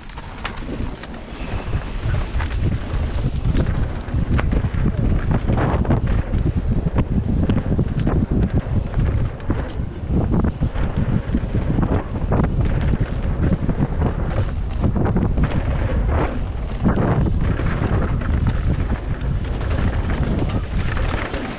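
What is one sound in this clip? Mountain bike tyres roll and skid fast over a dirt trail.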